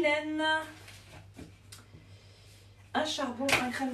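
Paper rustles and taps lightly on a table.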